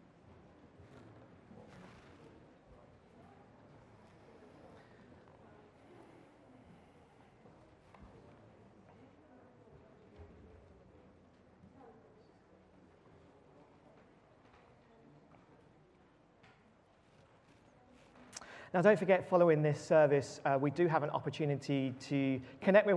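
A man speaks calmly and steadily, faint at first and then loud and close through a microphone.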